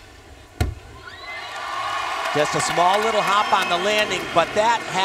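A large crowd cheers and applauds in an echoing arena.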